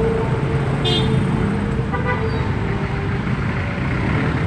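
A motor tricycle engine putters close by.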